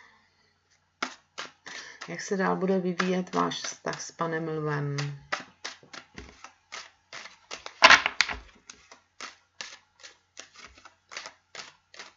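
Playing cards riffle and flick as they are shuffled.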